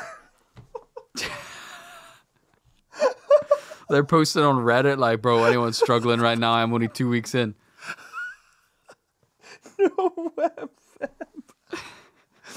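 A young man laughs helplessly into a microphone.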